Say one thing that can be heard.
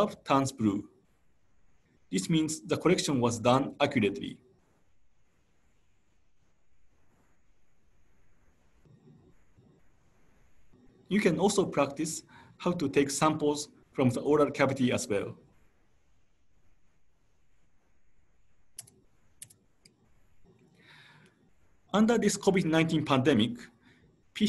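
A man speaks calmly through an online call microphone, in bursts with pauses.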